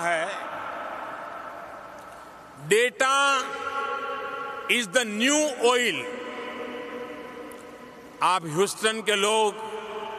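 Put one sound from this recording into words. An elderly man speaks with animation into a microphone, his voice echoing through a large hall.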